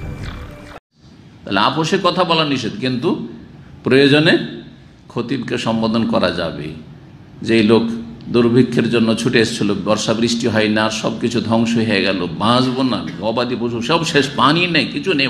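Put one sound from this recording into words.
A man speaks forcefully into a microphone, as if preaching.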